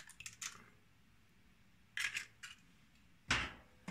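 An eggshell cracks and snaps apart.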